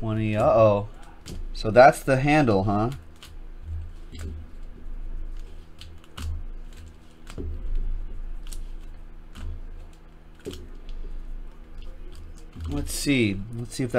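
Foil card packs crinkle and rustle as hands sort them.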